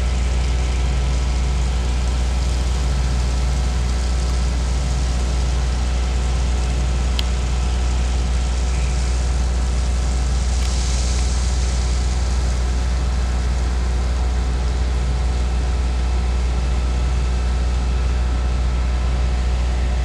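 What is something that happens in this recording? A large truck's pump engine drones steadily at a distance.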